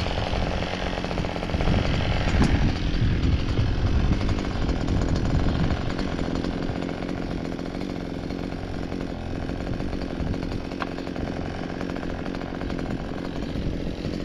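A string trimmer whirs as it cuts through grass.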